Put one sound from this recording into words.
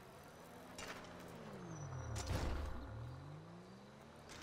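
A car engine approaches and passes close by.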